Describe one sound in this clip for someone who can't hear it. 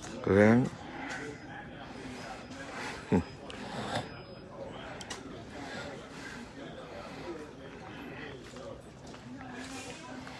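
A middle-aged man talks softly and casually, close by and slightly muffled.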